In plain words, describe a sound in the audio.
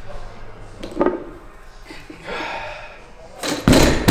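Heavy weight plates clank as a loaded bar lifts off the floor.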